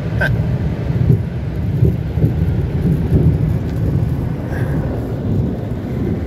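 Water sprays and drums against a car's windscreen.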